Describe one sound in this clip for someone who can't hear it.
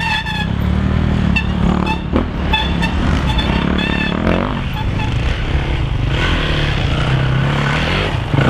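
A dirt bike engine revs loudly through the woods.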